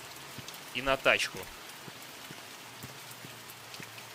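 Rain patters on wet pavement outdoors.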